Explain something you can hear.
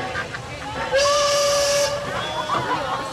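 A steam train whistle blows loudly.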